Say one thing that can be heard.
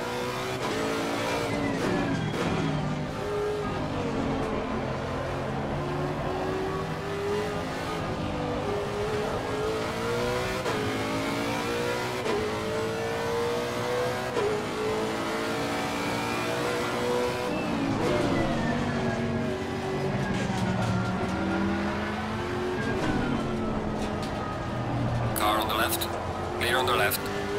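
A race car engine roars, rising in pitch and dropping sharply with each gear change.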